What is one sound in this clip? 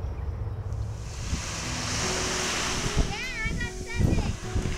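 Small waves wash up onto a pebbly shore.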